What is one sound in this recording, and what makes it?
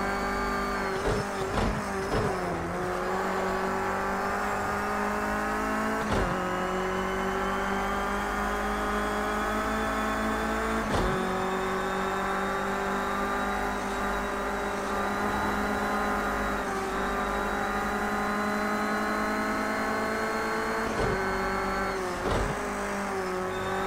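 A racing car engine pops and crackles as it slows for a bend.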